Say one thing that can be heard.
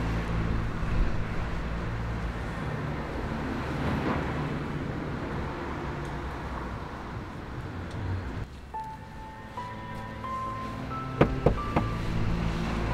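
A fist knocks sharply on a wooden door.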